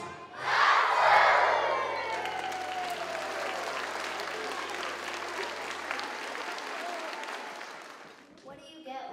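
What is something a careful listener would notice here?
A crowd of children cheers and shouts loudly in an echoing hall.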